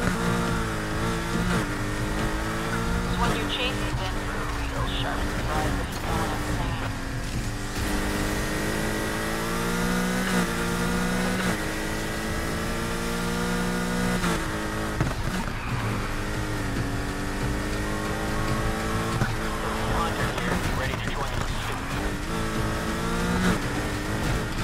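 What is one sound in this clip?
A car engine revs hard, rising in pitch and dropping with each gear change.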